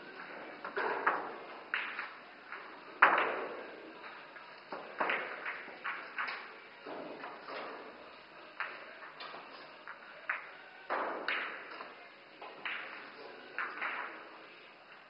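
Pool balls clack against each other on a table.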